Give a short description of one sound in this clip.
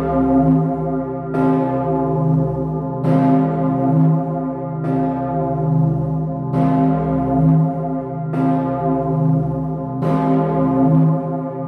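A large bell swings and tolls loudly, each strike ringing on with a long hum.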